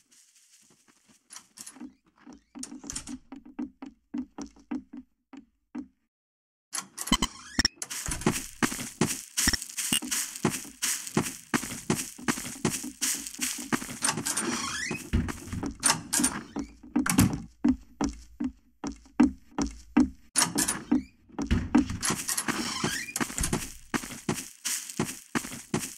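Footsteps tread steadily on grass and hard floors.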